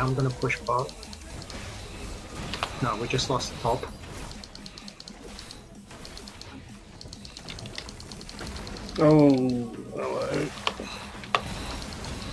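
Game spells and weapon hits crackle and clink in short bursts.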